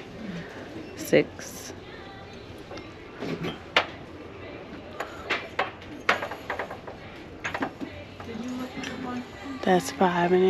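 Glass clinks lightly as it is picked up and set down on a glass shelf.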